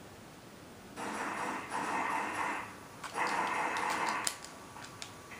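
Gunfire rattles in short bursts nearby.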